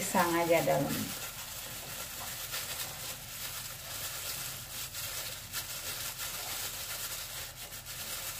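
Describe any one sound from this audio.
Banana leaves rustle and crinkle as they are folded by hand.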